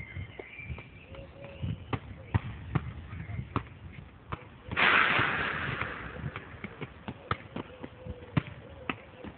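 A football is kicked and bounces on an asphalt court outdoors.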